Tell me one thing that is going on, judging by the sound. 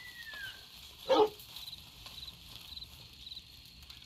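A campfire crackles nearby.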